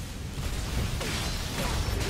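Blades slash and strike with a heavy thud.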